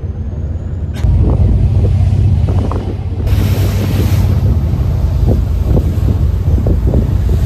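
Wind buffets loudly outdoors on open water.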